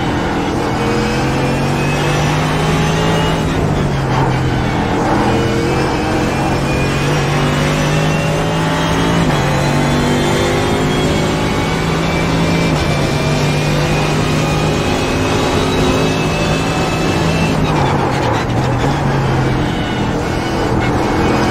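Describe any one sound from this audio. A racing car engine roars loudly, its pitch climbing through each gear and dropping sharply at every shift.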